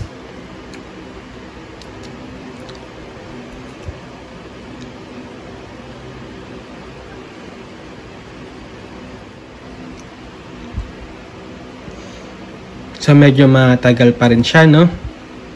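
Fingers press plastic calculator buttons with soft, light clicks.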